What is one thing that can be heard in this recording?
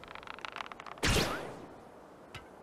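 A figure launches into the air with a loud whoosh.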